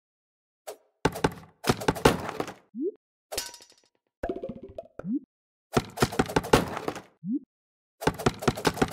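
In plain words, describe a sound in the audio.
A knife thuds into a wooden target again and again.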